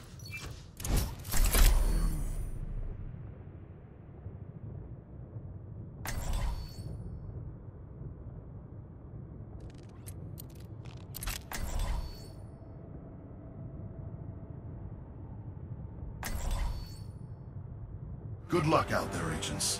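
A video game menu plays short whooshing sound effects.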